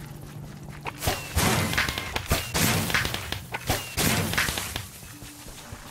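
Fireworks burst and crackle with sharp bangs.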